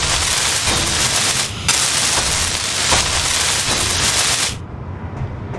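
A welding torch hisses and crackles loudly.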